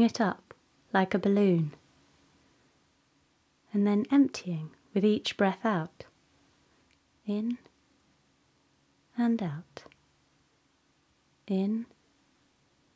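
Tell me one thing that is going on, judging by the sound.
A woman speaks calmly and warmly into a close microphone, in short phrases with pauses.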